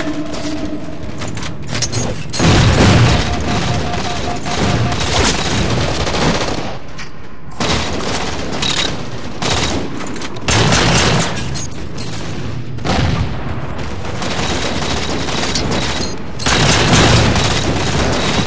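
Video game gunfire bangs out in loud bursts.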